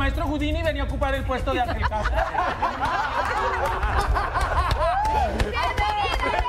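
A group of people cheer and chatter with excitement.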